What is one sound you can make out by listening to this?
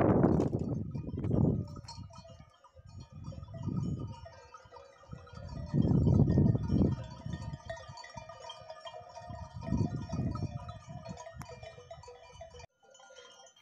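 Wind gusts roughly across the microphone outdoors.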